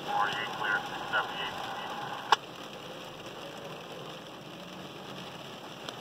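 A fire truck rumbles past on a wet road.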